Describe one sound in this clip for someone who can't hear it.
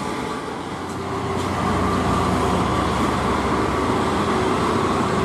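Several trucks and cars rumble past together in heavy traffic.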